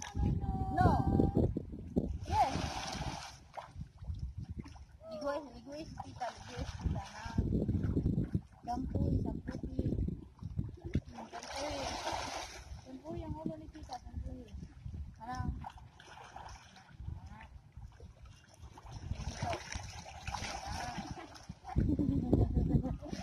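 Water laps and splashes around people wading.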